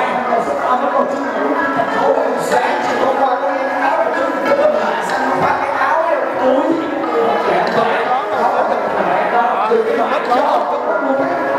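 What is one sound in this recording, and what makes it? A young man beatboxes rapidly into a microphone over a loudspeaker.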